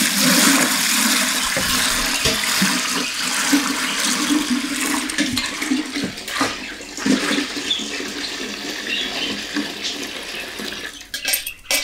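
Thick liquid pours and splashes into a metal pot.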